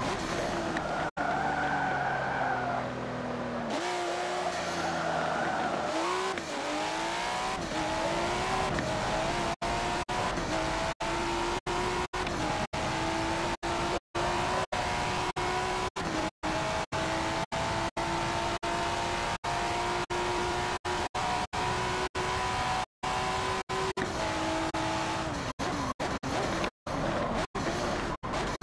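A sports car engine revs hard, rising in pitch through each gear and dropping between shifts.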